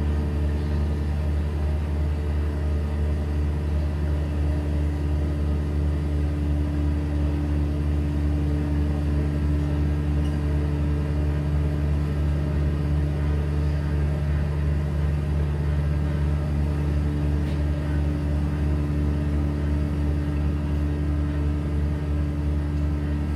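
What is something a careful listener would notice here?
A keyboard plays a steady, droning electronic sound through loud speakers.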